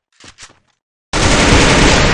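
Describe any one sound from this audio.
Gunshots crack in a quick burst.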